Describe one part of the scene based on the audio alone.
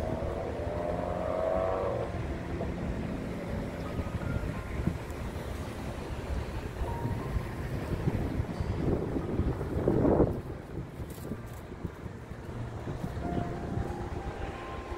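Wind rumbles across the open outdoors.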